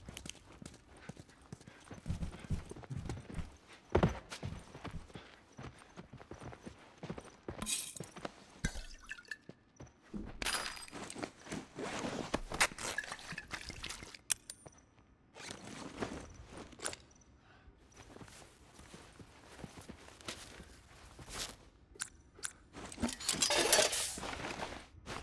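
Footsteps scuff slowly across a floor.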